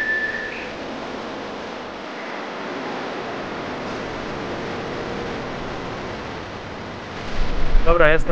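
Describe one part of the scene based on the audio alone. A train rumbles along the tracks.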